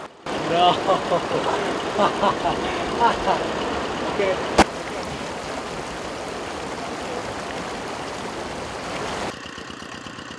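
Water splashes and sloshes around a raft.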